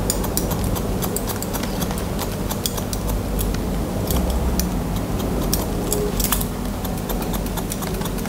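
Scissors snip hair in quick, crisp clicks close by.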